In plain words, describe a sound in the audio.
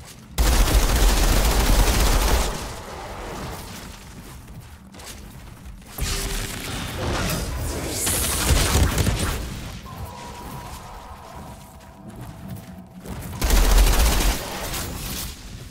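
A large winged creature shrieks and flaps its wings.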